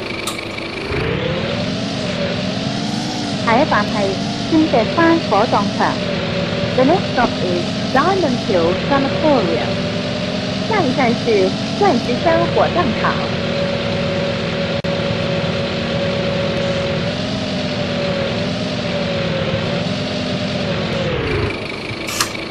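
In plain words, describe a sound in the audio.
A diesel bus engine drones as the bus drives along a road.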